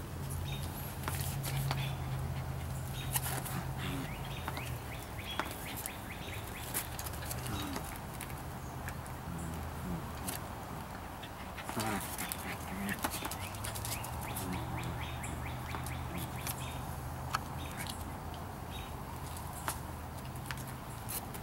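Puppies growl softly while playing.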